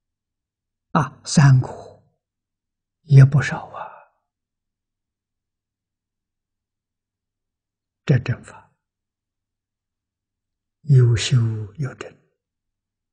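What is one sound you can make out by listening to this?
An elderly man speaks calmly and slowly in short phrases, close to a microphone.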